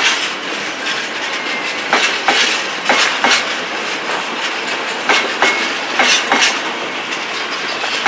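A freight train rumbles steadily past.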